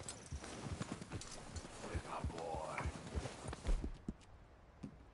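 Horse hooves thud and crunch steadily through snow.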